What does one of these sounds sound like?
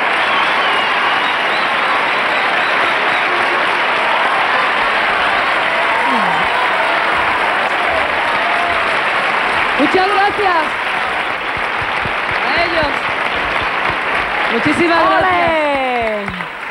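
A large crowd claps and cheers loudly in a big hall.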